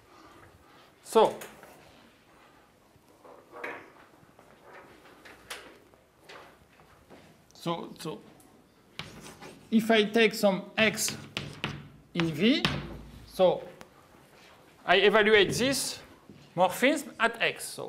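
A man speaks calmly, lecturing in a room.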